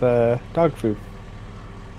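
A man speaks briefly and with animation into a close microphone.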